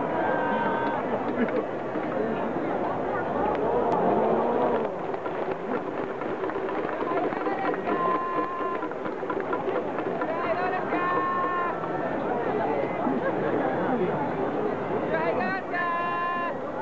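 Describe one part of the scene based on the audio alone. A large crowd chatters and calls out in an open stadium.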